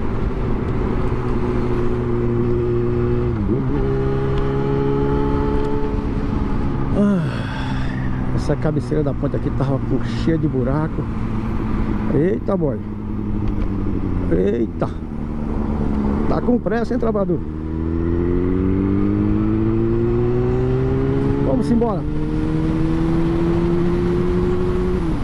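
A motorcycle engine rumbles close by, revving up and down as it shifts gears.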